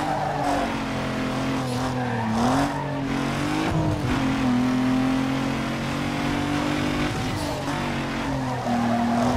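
A racing car engine roars steadily, its pitch rising and dipping with gear changes.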